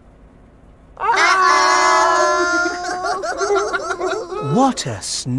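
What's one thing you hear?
Several adults exclaim together in high, playful, childlike voices.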